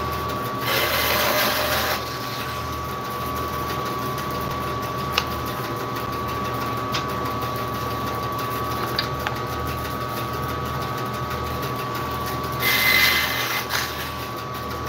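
A band saw blade cuts into wood with a rasping whine.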